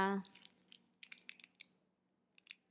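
A plastic packet crinkles in a woman's hands.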